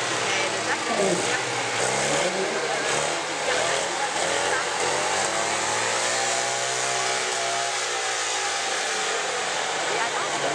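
A small off-road buggy engine revs.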